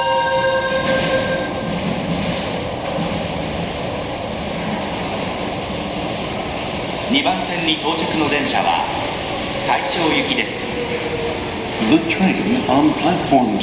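A train rumbles into the station and slows to a stop.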